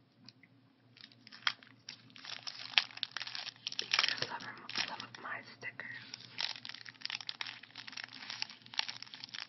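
A plastic sticker packet crinkles and rustles as it is handled up close.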